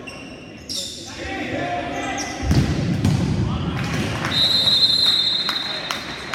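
Spectators chatter and cheer in a large echoing hall.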